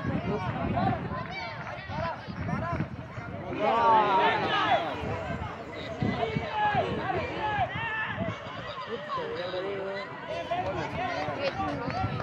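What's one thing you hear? Young boys call out to each other on the field.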